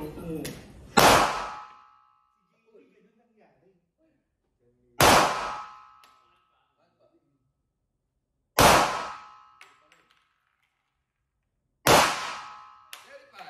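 A pistol fires loud single shots that ring out in an echoing room.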